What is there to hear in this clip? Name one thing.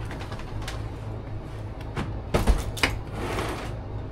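Gear clatters inside a van.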